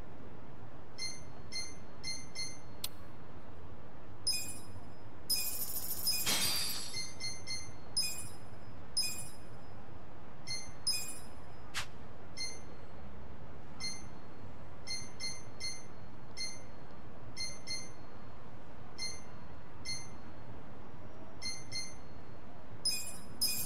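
Short electronic blips chime as a menu cursor moves.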